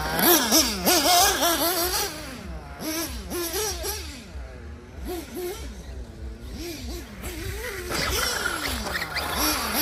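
A small toy car's electric motor whirs as the car drives over dirt.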